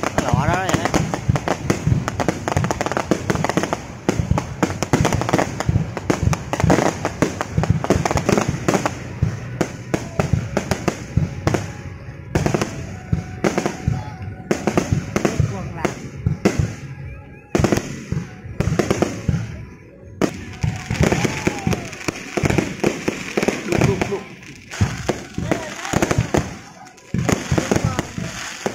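Fireworks burst with loud bangs.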